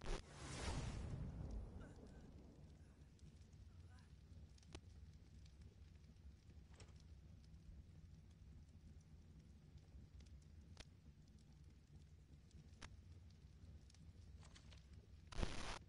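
Short soft clicks sound now and then.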